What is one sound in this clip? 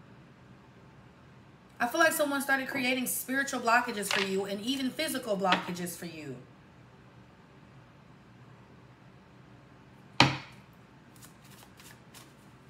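Cards are set down with soft taps on a table.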